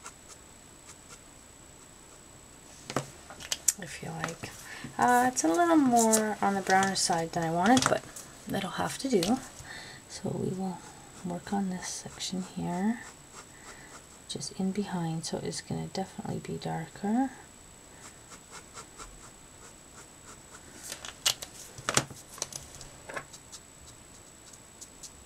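A felt-tip marker scratches softly on paper.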